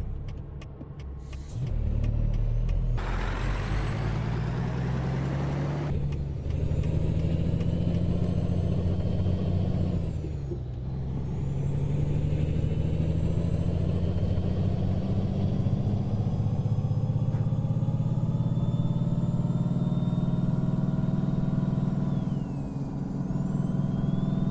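A truck engine hums steadily and rises in pitch as it speeds up.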